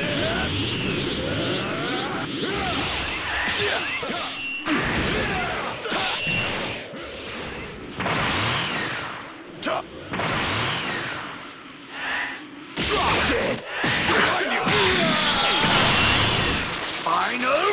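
Energy blasts crackle and roar.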